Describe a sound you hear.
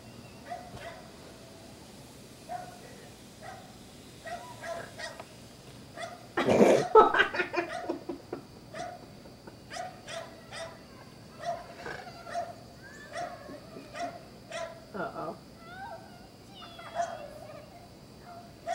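Young children shout and laugh excitedly outdoors.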